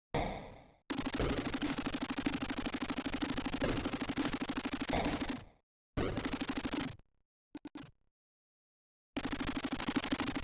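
Rapid electronic gunfire rattles in short bursts.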